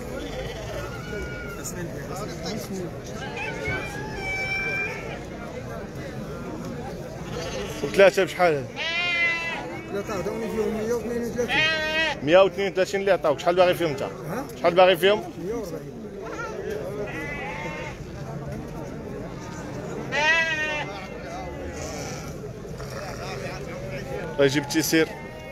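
Several men talk with animation close by, outdoors among a crowd.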